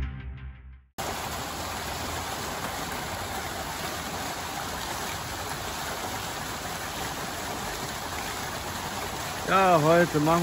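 A fountain splashes steadily into a pool.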